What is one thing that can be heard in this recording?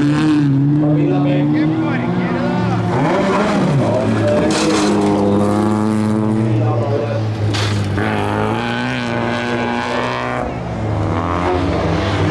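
Tyres crunch and skid on loose gravel.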